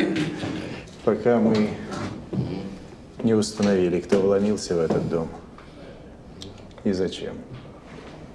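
A second man speaks calmly close by.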